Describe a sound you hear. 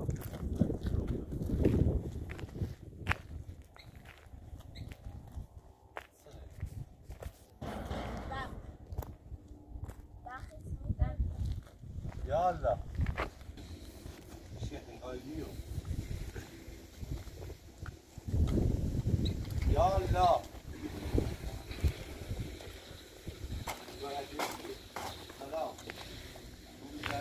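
Footsteps crunch on gravel outdoors.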